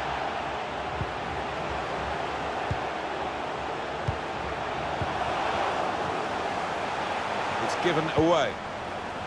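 A football is kicked with dull thumps now and then.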